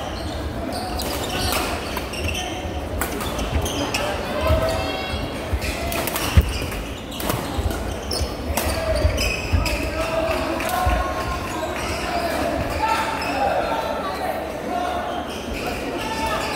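Shoes squeak on a hard floor.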